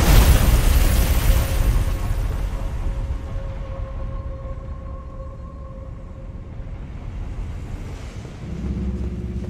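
Molten lava roars with a low, steady rumble.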